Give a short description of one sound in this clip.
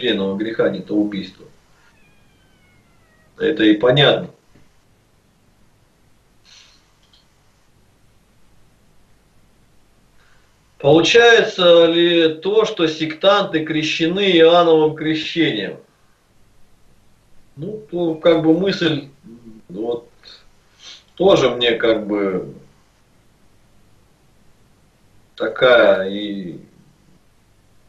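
A man speaks calmly in a small room, in short bursts with pauses.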